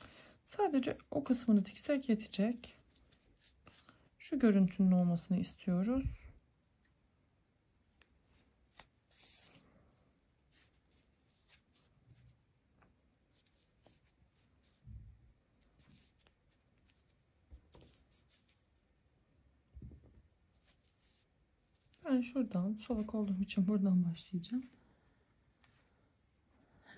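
Yarn rustles softly as it is pulled and handled.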